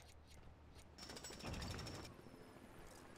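Leafy bushes crash and burst apart with a scatter of small chimes.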